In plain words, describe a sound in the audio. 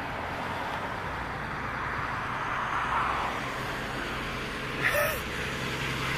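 A large truck approaches from a distance, its engine growing louder.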